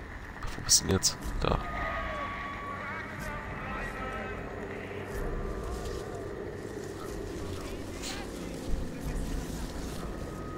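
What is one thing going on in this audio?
Footsteps crunch softly on a gravel path.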